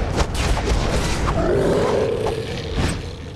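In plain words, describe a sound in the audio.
A magical blast crackles and hums.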